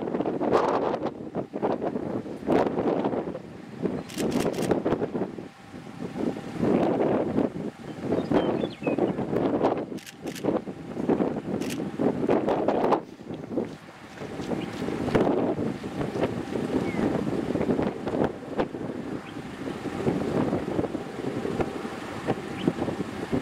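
Strong wind gusts and buffets loudly outdoors.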